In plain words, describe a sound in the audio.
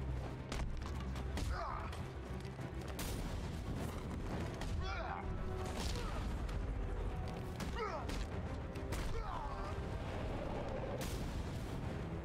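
Heavy punches and kicks thud and crack in a fast brawl.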